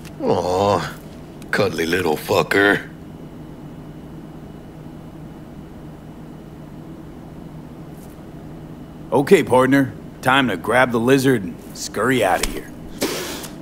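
A man speaks warmly and playfully, close by.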